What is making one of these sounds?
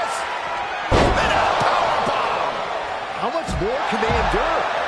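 Heavy thuds of bodies slamming onto a wrestling ring.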